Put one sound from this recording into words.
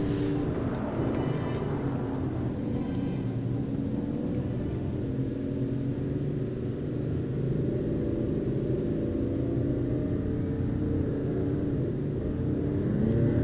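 A car engine hums steadily as a car drives along a road.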